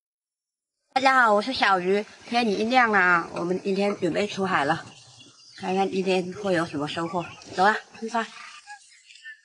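A young woman speaks cheerfully, close by, outdoors.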